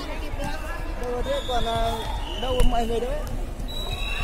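Young women call out to each other.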